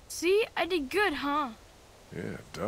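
A young girl speaks softly.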